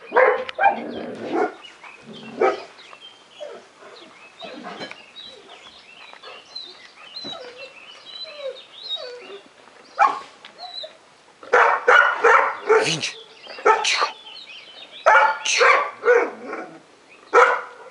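A dog pants close by.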